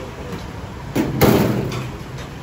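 A heavy metal lid clangs shut on a pot.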